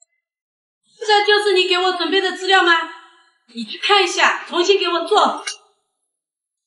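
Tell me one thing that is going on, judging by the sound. A woman shouts angrily close by.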